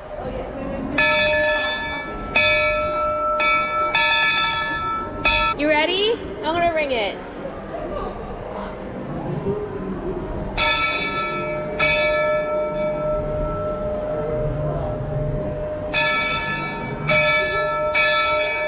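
A locomotive bell clangs loudly again and again, in bursts.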